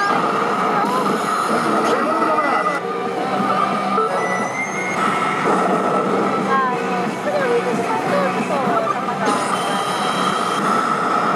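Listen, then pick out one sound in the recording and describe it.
Buttons on a slot machine click as they are pressed.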